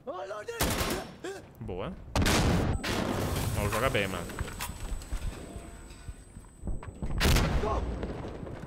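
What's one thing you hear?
Gunfire bursts loudly.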